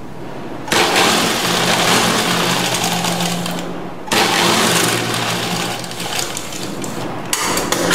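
An industrial sewing machine runs in bursts, stitching through fabric.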